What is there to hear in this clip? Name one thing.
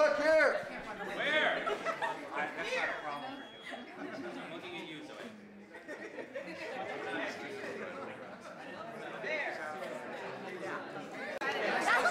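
A large crowd of men and women cheers and chatters loudly in a large echoing hall.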